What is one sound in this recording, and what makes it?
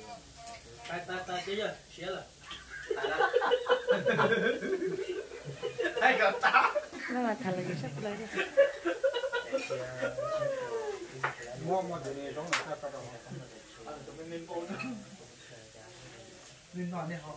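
Several men talk and laugh loudly together close by.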